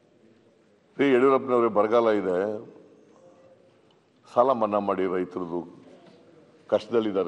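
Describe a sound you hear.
An older man speaks in short bursts through a microphone.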